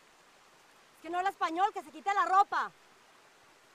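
A young woman shouts angrily close by.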